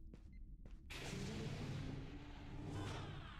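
A sliding door hisses open.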